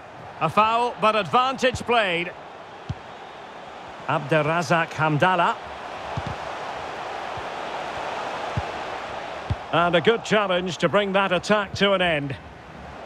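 A large stadium crowd murmurs and cheers steadily in the background.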